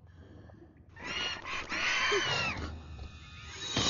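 A creature shrieks loudly.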